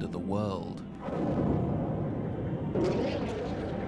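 A deep explosion booms and rumbles.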